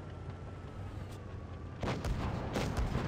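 A shell explodes against rocks with a dull blast.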